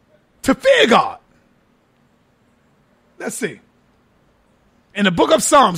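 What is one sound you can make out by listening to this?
A man speaks in short bursts through a microphone.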